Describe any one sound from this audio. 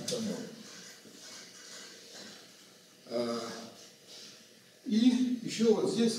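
An elderly man lectures calmly in a room with a slight echo.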